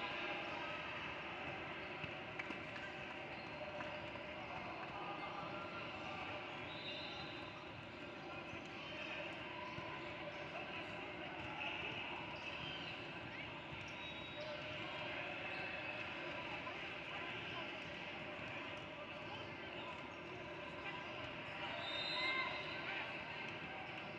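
Voices of players and spectators chatter throughout a large echoing gym.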